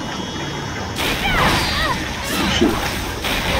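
A crackling magical blast bursts with whooshing noise.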